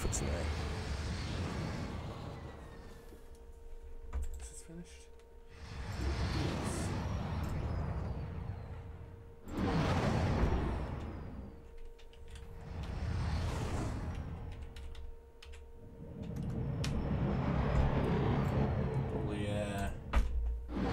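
A spaceship engine roars past in swelling, rumbling whooshes.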